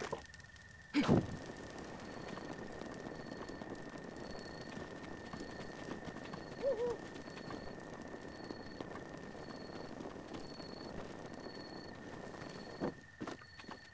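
A fire crackles and hisses.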